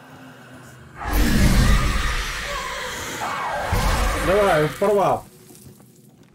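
A loud ghostly whoosh rushes past and fades.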